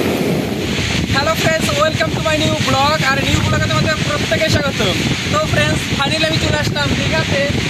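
A young man talks with animation close to the microphone, outdoors in wind.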